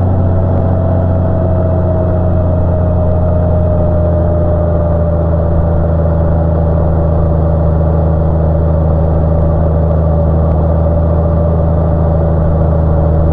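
A motorcycle engine hums steadily at cruising speed, close by.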